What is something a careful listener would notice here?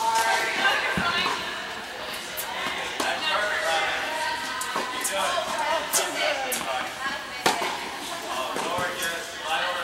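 Tennis rackets strike balls in a large echoing indoor hall.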